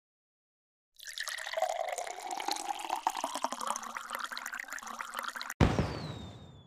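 Liquid gurgles and pours into cups.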